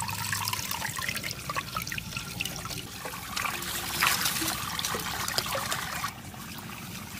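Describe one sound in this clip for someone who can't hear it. Water trickles and splashes into a clay pot.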